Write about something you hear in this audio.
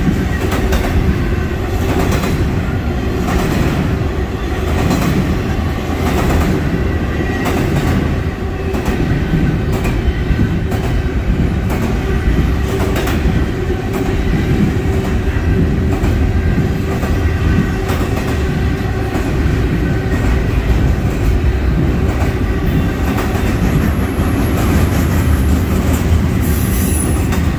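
Steel wheels clatter and clack rhythmically over rail joints.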